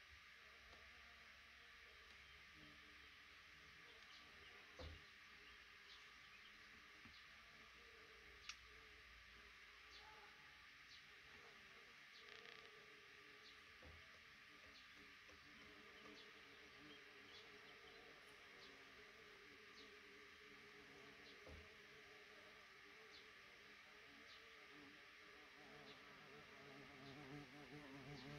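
Nestling birds peep softly and repeatedly close by.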